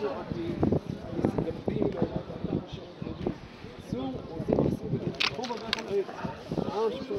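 Men talk loudly close by, their voices overlapping.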